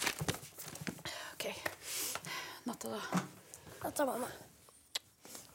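A young girl speaks softly nearby.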